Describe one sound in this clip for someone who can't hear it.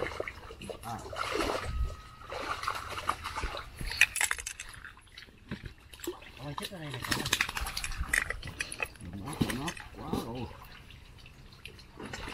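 Feet squelch and splash through shallow mud and water.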